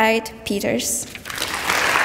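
A young woman speaks calmly into a microphone in an echoing hall.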